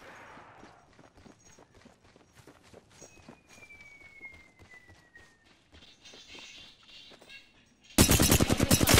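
Footsteps patter softly on a hard floor.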